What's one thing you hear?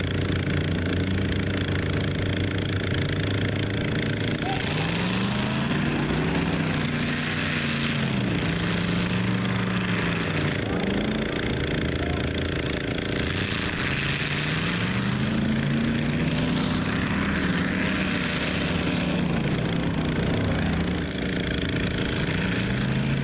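A truck engine revs hard, rising and falling.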